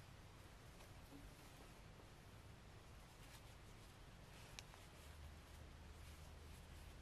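A crochet hook clicks softly against yarn.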